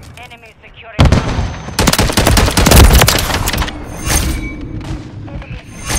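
Rapid gunfire bursts loudly and echoes.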